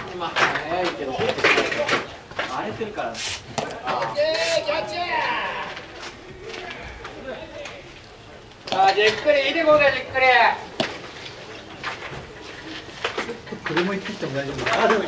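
Young men shout and cheer from across an open field.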